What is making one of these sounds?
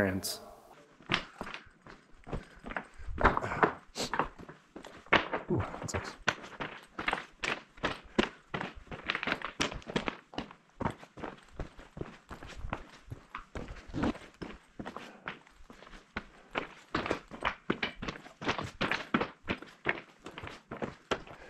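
Footsteps crunch on loose rock and gravel.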